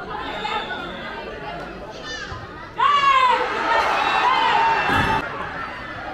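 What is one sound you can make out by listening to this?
Spectators shout outdoors at a football match.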